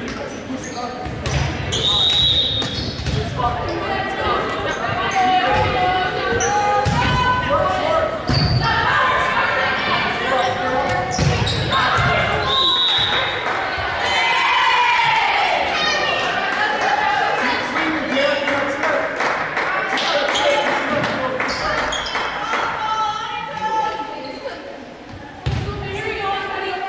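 Young women shout and call out to each other across an echoing hall.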